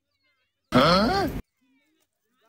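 A goat bleats loudly close by.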